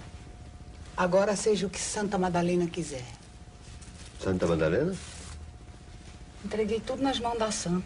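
A woman sings loudly.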